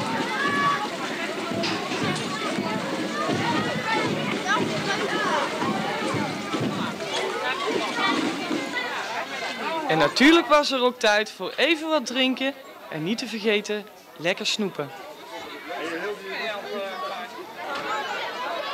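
A crowd of children chatters and calls out outdoors.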